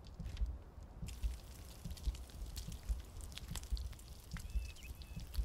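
Meat sizzles over a fire.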